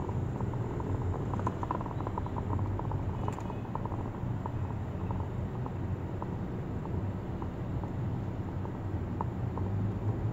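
Motorcycles putter past close by.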